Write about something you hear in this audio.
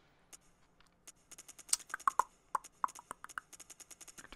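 Short menu clicks tick rapidly one after another.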